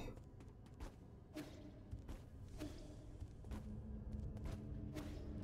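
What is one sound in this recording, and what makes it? Video game sound effects ring out in sharp bursts.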